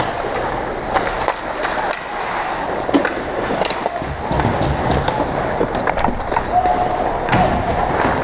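Skate blades scrape and carve across the ice.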